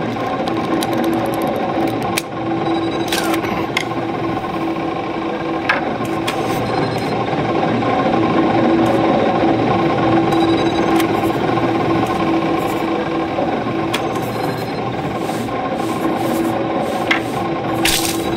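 Steady, droning electronic game music plays throughout.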